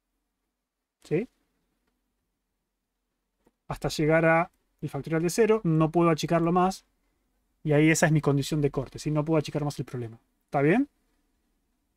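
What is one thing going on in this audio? A young man speaks into a close microphone, explaining with animation, with short pauses.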